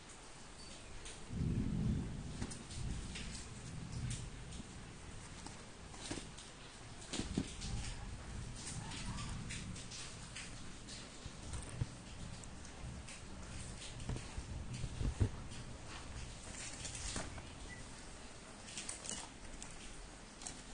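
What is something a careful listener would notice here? A hand taps and pats a taped cardboard parcel.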